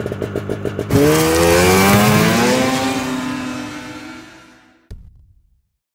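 A snowmobile engine revs loudly and roars away, fading.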